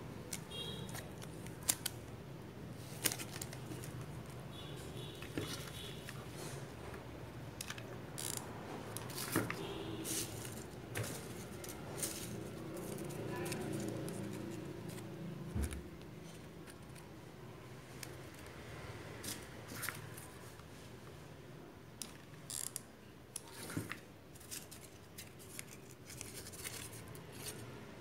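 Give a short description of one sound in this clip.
Foam paper crinkles and rustles as hands handle it.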